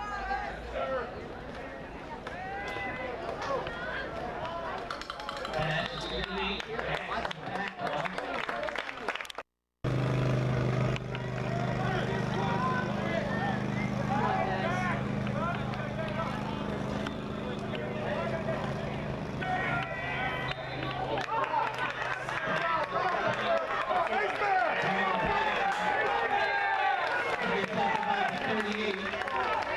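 A crowd of young men and boys talk and shout nearby outdoors.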